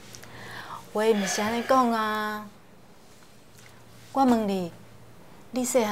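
A young woman speaks gently up close.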